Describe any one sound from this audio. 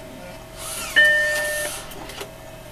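A computer plays a short startup chime.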